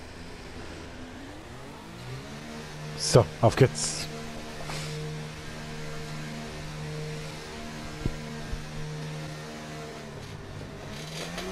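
A Formula One car's engine revs up and then holds a steady drone at a constant speed.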